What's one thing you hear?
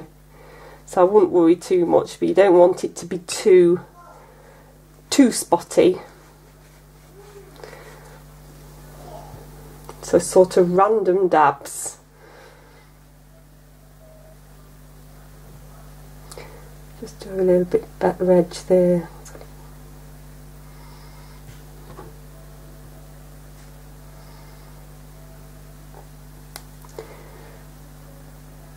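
A paintbrush swishes and dabs softly on paper.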